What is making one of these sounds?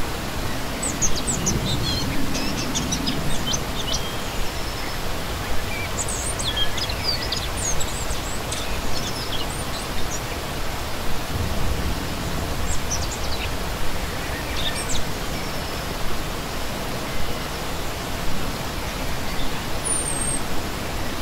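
A stream rushes and splashes steadily over rocks.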